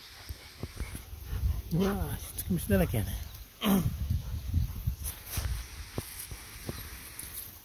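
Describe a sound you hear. A dog snuffles and pants close by.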